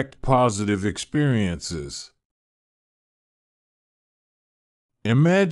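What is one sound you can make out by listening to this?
A man speaks calmly and slowly, close to a microphone.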